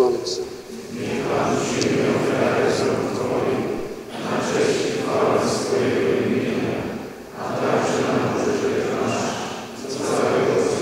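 A crowd sings together, echoing.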